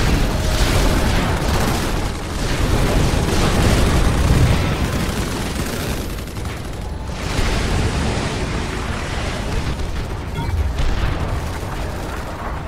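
Laser weapons fire and explosions rumble in a busy battle.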